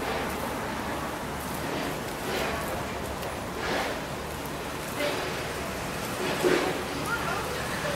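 Footsteps walk away on a stone floor and slowly fade.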